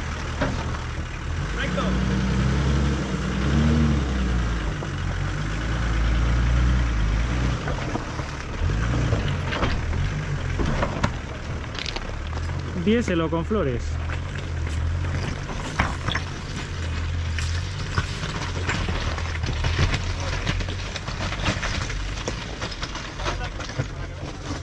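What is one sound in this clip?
An engine rumbles low as an off-road vehicle crawls over rocks.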